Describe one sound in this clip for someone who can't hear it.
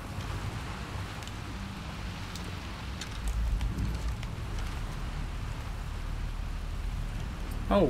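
A crossbow fires a bolt with a sharp thud.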